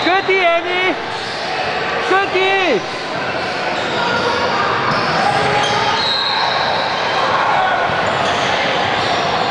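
Sneakers squeak on a hard floor in a large echoing gym.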